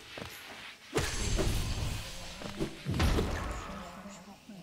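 Heavy thuds and crashes ring out.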